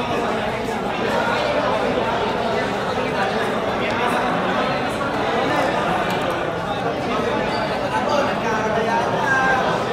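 Playing cards are shuffled and slapped down on a table.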